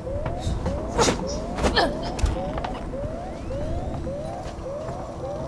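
A motion tracker beeps with short rising chirps at a steady pace.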